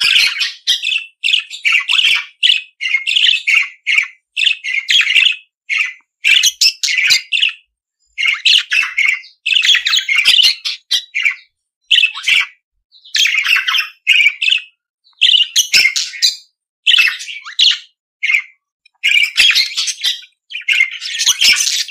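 Budgies chirp and chatter rapidly in short bursts.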